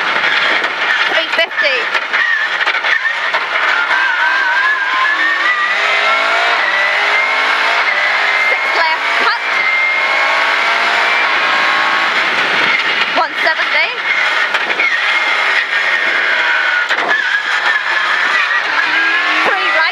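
A rally car engine rises in pitch and drops sharply as it shifts through the gears.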